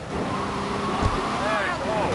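A car crashes into another car with a metallic bang.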